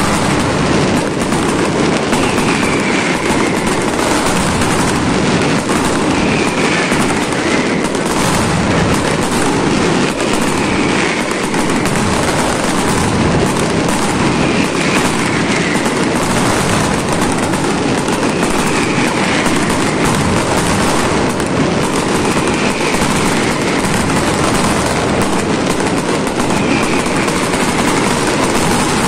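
Fireworks bang and crackle overhead, again and again.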